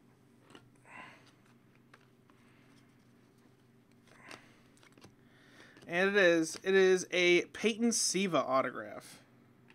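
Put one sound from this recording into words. Trading cards slide and rub against each other.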